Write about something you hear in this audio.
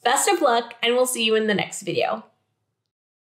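A young woman speaks brightly and with animation, close to a microphone.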